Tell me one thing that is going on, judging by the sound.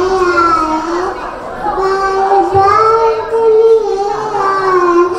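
A young girl sings into a microphone, heard through loudspeakers.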